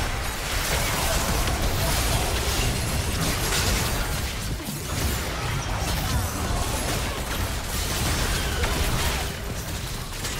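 Champions strike each other with sharp hits and blasts.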